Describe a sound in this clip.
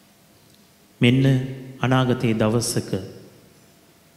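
A man sings or chants through a microphone in a large echoing hall.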